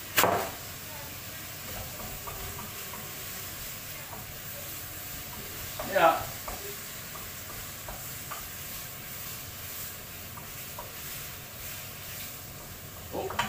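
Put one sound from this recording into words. Food sizzles softly in a frying pan.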